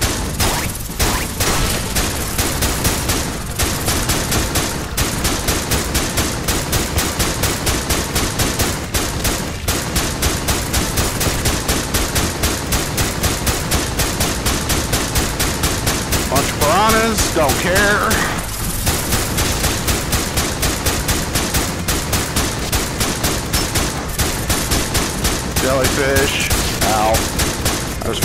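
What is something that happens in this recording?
A gun fires rapid repeated shots.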